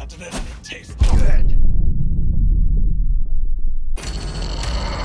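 A deep rumbling boom rolls on for a few seconds.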